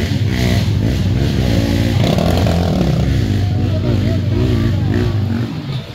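Dirt bike engines whine and rev nearby.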